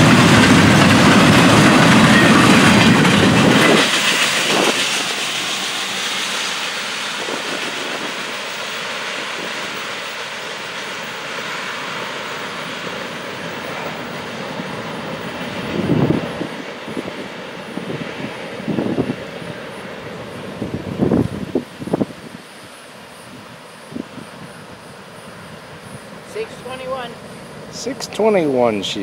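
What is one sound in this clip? A freight train rumbles past, its wheels clattering on the rails.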